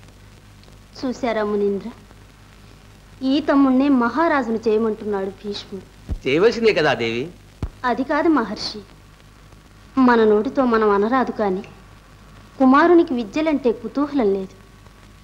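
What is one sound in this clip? A man sings a melody in a clear voice.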